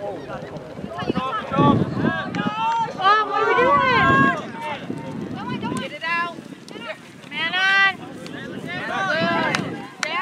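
Young men shout loudly to each other outdoors.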